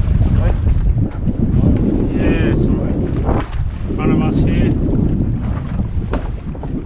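Waves splash against a moving boat's hull.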